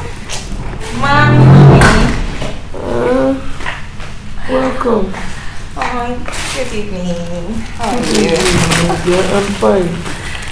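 A young woman speaks loudly with animation nearby.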